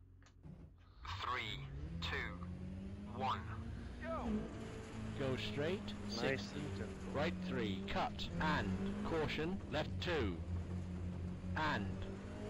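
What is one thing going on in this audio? A rally car engine revs hard and roars as the car speeds away.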